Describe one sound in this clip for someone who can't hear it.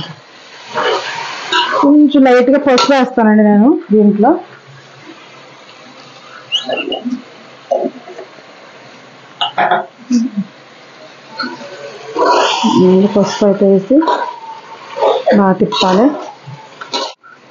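A metal spoon scrapes and clanks against a metal pot.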